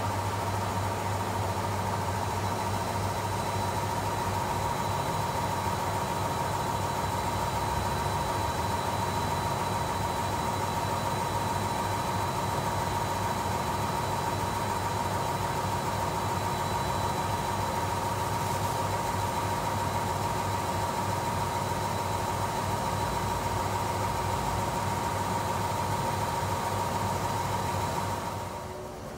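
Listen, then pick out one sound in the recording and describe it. A commercial front-loading washing machine hums as its drum turns wet laundry.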